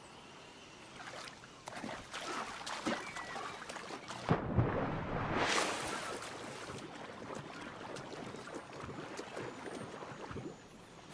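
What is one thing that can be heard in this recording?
Water splashes as someone wades through the shallows.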